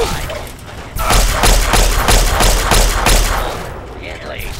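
A laser rifle fires a rapid stream of buzzing zaps.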